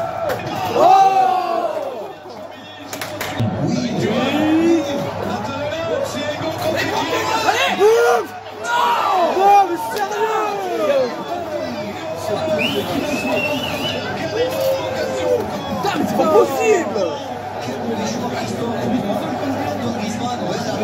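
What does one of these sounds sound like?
Young men shout and cheer loudly nearby.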